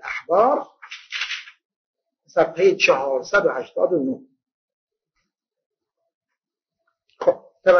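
An elderly man speaks steadily into a microphone, with pauses.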